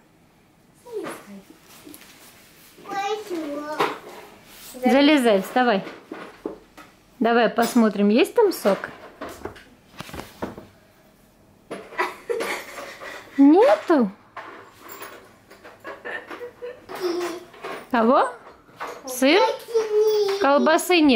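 A small child chatters in a high voice close by.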